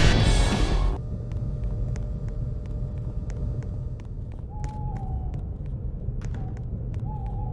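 Footsteps tap quickly and steadily on a hard path.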